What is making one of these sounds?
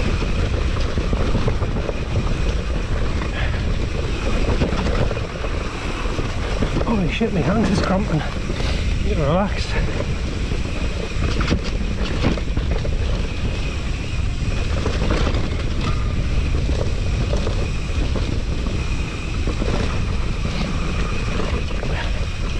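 A bicycle rattles and clicks over bumps.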